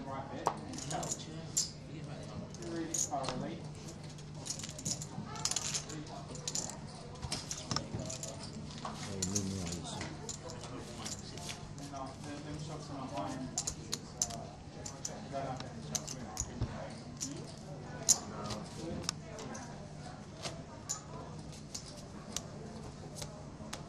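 Poker chips click and clatter as they are stacked and pushed across a felt table.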